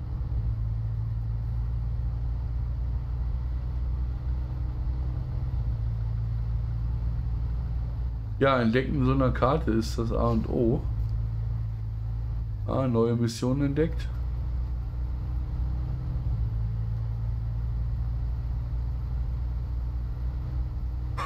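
A truck engine rumbles low and steady as the truck crawls over rough ground.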